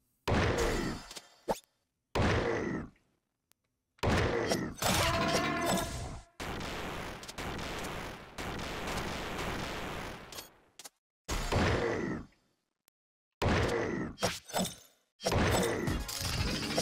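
Short electronic whooshes and zaps burst out again and again.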